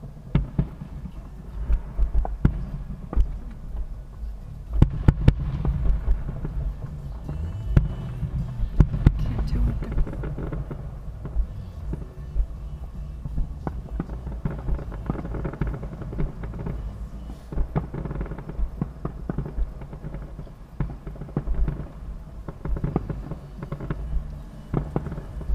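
Fireworks boom and crackle in the distance, outdoors at night.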